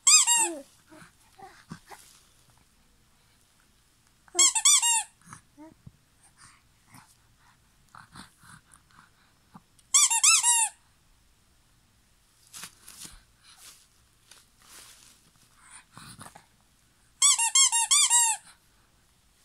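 A rubber toy squeaks in short bursts.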